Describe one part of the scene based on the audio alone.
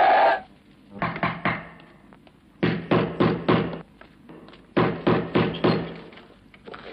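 A man knocks hard on a wooden door several times.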